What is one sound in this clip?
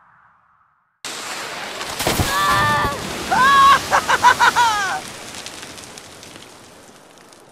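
A gust of wind whooshes and dies away.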